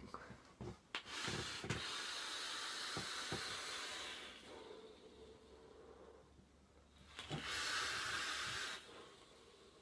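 A vape device crackles as a young man inhales deeply.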